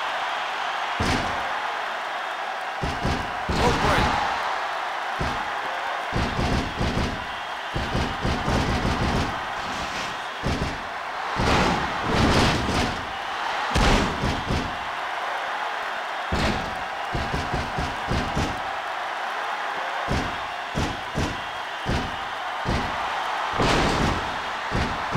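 Bodies slam onto a wrestling ring mat with heavy thuds.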